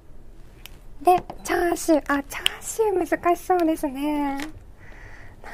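A young woman speaks brightly and with animation into a microphone close by.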